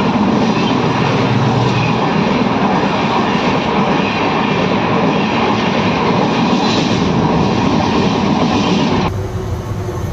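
Passenger train coaches roar and clatter past at speed.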